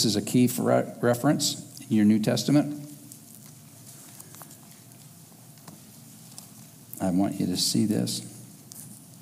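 A man speaks calmly into a headset microphone, with long pauses.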